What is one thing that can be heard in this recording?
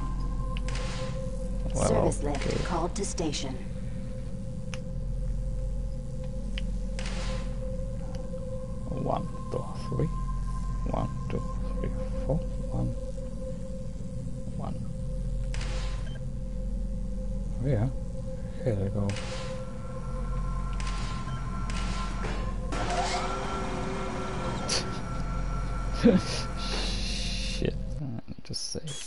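A low machine hum drones steadily.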